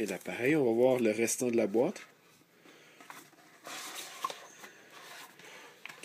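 Light cardboard scrapes and rustles as a box is handled.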